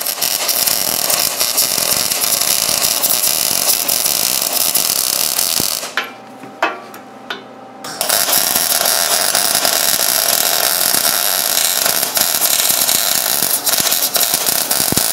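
A welding arc crackles and sizzles loudly.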